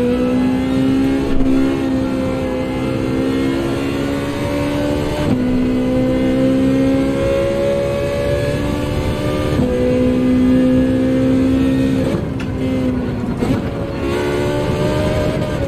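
A racing car engine drones at high revs, shifting gears up and down.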